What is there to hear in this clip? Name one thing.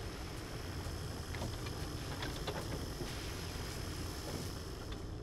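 A small cart rumbles and rattles along metal rails.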